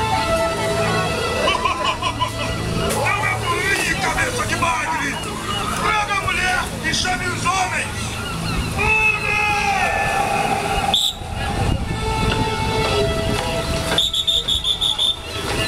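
Children chatter and shout nearby.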